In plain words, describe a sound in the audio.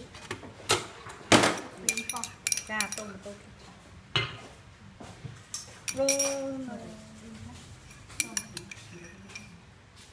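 A spoon clinks and scrapes against a small bowl.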